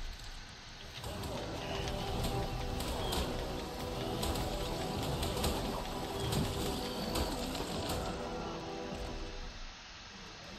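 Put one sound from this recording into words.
A large creature roars and growls while fighting.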